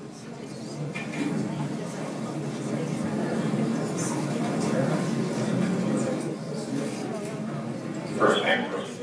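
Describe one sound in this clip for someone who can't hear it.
A crowd murmurs in a large room.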